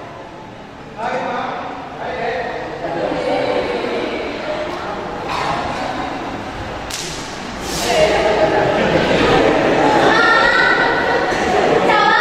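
A young man speaks loudly and with animation in an echoing hall.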